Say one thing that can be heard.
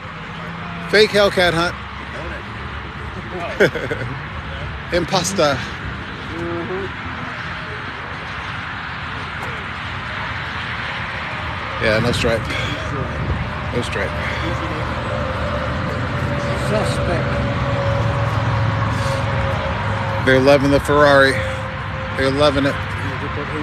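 A mixed crowd of adults talks outdoors.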